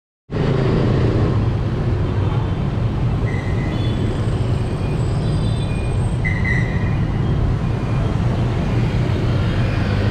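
Motorbike engines and traffic hum steadily through a busy street outdoors.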